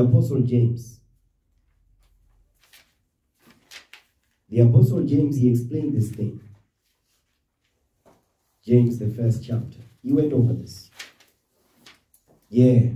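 A man speaks calmly and slowly, close to a microphone, with pauses.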